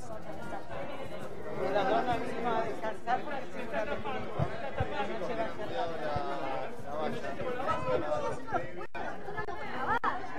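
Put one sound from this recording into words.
An elderly woman speaks into microphones amid the crowd.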